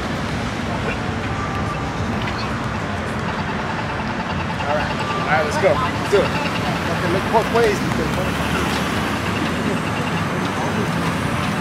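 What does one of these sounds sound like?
Traffic hums steadily nearby outdoors.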